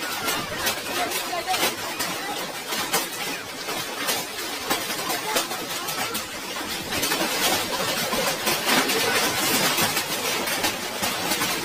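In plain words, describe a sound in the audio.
Strong wind roars outdoors.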